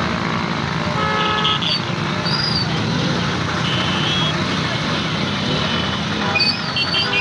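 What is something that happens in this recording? Vehicle horns honk repeatedly.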